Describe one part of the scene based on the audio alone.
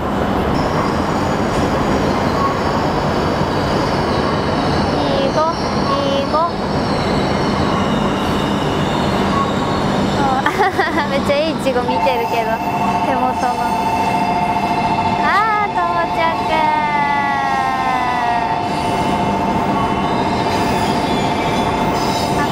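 A train rolls in slowly with a low, steady hum.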